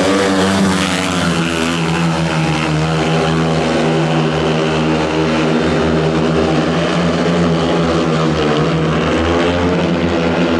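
Motorcycle engines roar loudly as they race around a track.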